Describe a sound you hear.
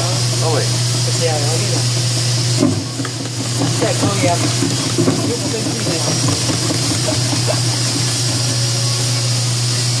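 A vegetable slicing machine cuts carrots into strips.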